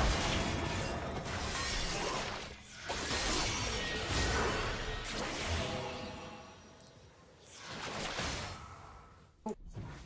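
Game spell effects whoosh and clash in quick bursts.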